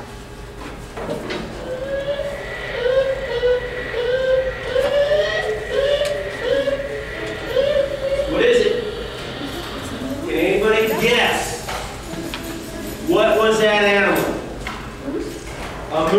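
A middle-aged man speaks with animation to a room, heard from a distance in a hall.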